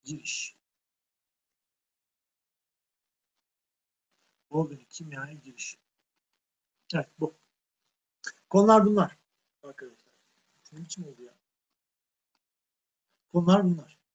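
A man speaks calmly in short phrases through a microphone, as if in an online call.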